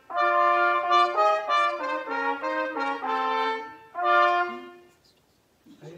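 Two trumpets play a melody together in a large echoing hall.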